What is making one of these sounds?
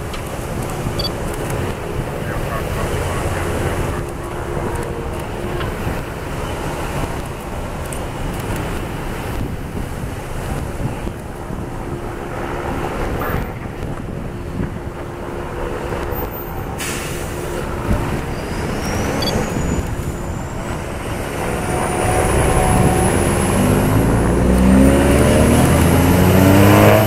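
Cars drive past one after another on a road.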